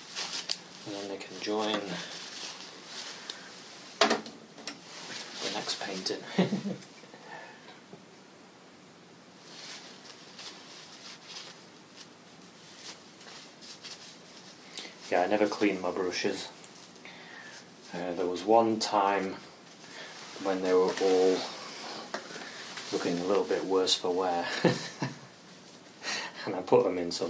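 A man talks calmly nearby, as if explaining.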